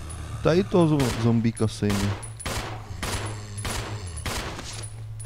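Pistol shots ring out one after another.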